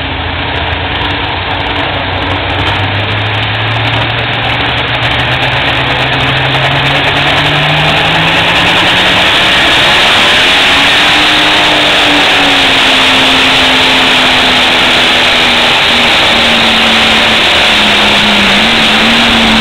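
A tractor engine roars and revs up, growing louder and louder.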